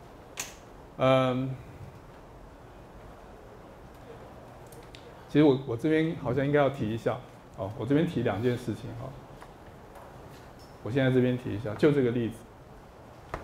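A middle-aged man speaks through a microphone in short bursts, lecturing with pauses.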